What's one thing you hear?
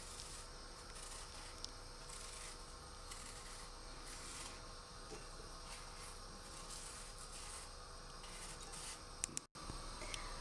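A knife scrapes softly as it peels an apple.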